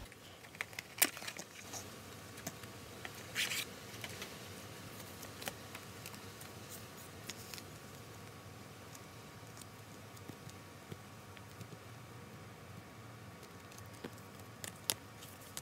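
Plastic sleeves crinkle and rustle as cards are handled.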